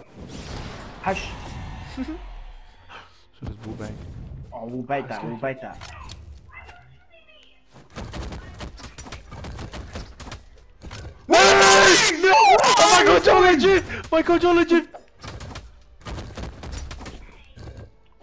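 Game fighters' weapons clash and strike with sharp hits.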